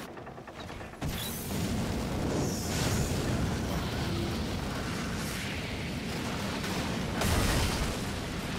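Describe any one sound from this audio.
Cannons fire with deep booming blasts.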